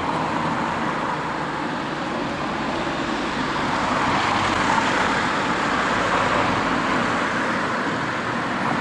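Cars drive past on a nearby road with a steady rush of tyres.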